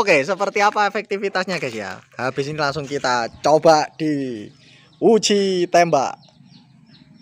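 A man talks with animation nearby.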